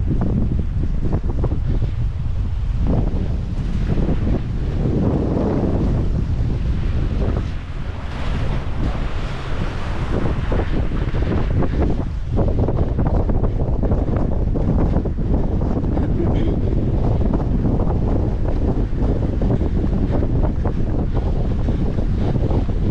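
Wind buffets the microphone loudly outdoors.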